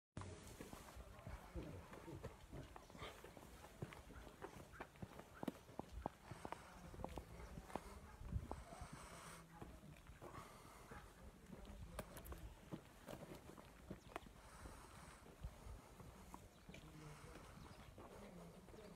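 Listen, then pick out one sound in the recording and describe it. Footsteps shuffle slowly on a paved path outdoors.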